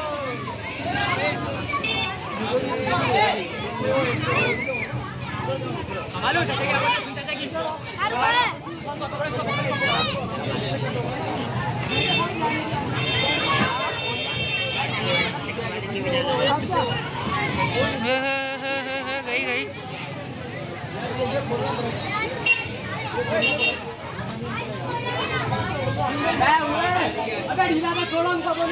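A crowd of men and boys chatter and call out close by, outdoors.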